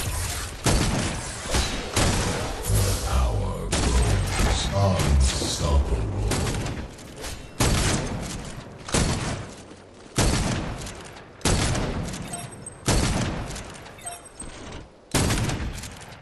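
Gunshots and blasts boom in quick bursts.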